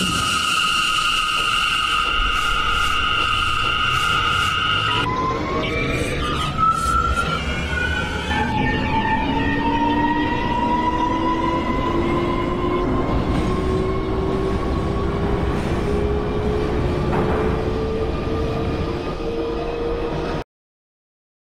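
Train wheels rumble steadily on the rails.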